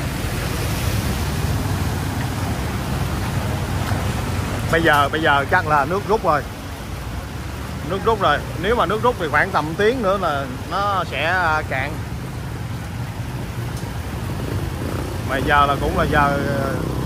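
Tyres splash through deep water.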